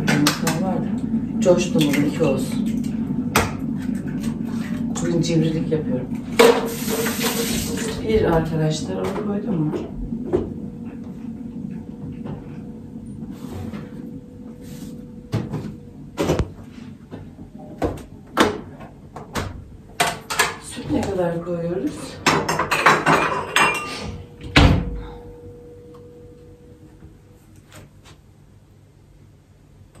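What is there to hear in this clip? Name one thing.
Dishes and utensils clink and knock on a hard counter.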